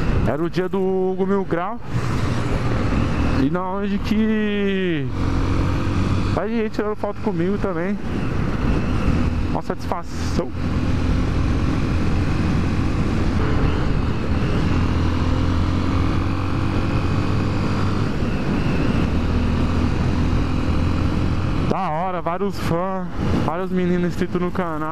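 A motorcycle engine revs up and drops as gears change.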